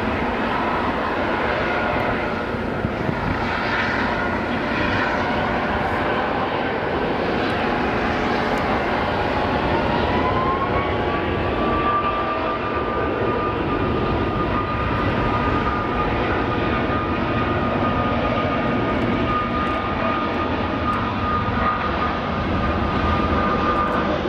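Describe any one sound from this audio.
A jet airliner's engines roar steadily as it taxis.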